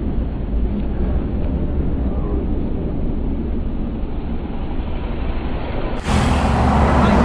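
A motorcycle engine hums as it rides past.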